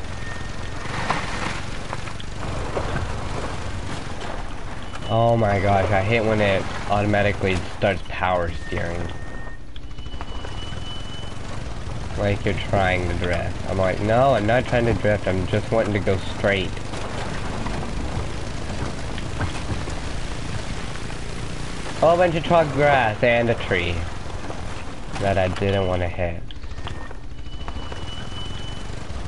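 A quad bike engine hums steadily as it drives through brush.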